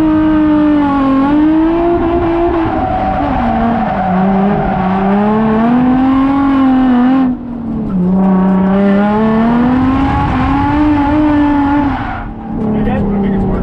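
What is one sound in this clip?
Tyres squeal on the track.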